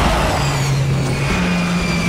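A jet engine roars overhead.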